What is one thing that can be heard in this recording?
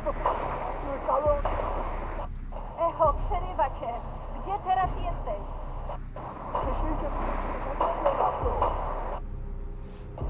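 A man's voice talks through a crackling radio with bursts of static.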